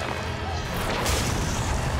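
A huge snake slithers heavily over the ground.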